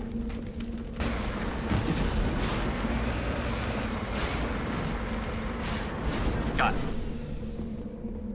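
Wheels roll over rough ground.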